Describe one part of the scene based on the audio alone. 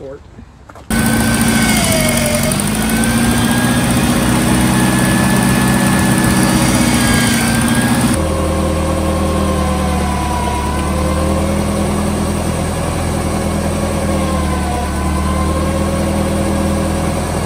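An engine runs steadily with a high whine.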